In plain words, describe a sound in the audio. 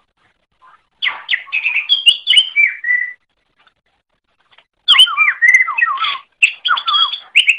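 A small bird sings bright, quick warbling phrases in bursts.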